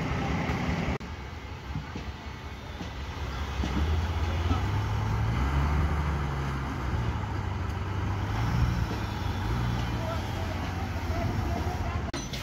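A worker taps metal formwork clamps with a hammer.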